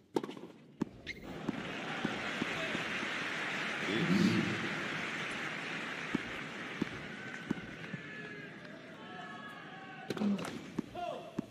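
A tennis ball is struck by rackets with sharp pops.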